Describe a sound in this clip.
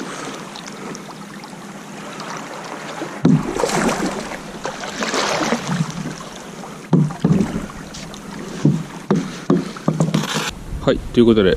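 Water laps and sloshes against rocks close by.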